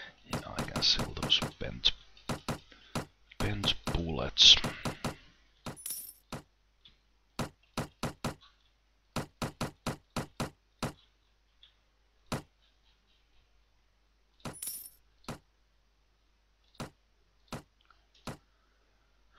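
Short interface clicks sound again and again as menu items are picked.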